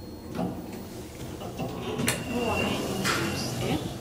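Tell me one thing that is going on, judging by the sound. Elevator doors slide open again.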